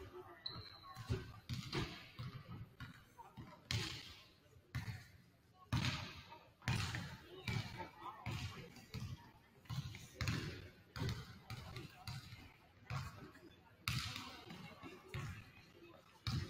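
A basketball bounces on a hardwood floor, echoing in a large hall.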